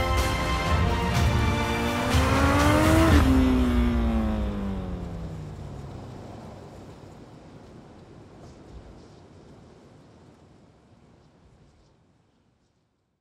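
A motorcycle engine roars closer, rising in pitch, then passes by and fades into the distance with a falling pitch.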